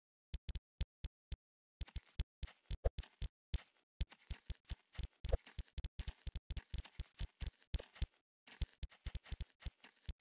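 Quick game pops and chimes sound as coins are collected, over and over.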